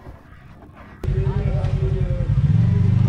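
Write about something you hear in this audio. An off-road buggy engine rumbles and revs loudly nearby.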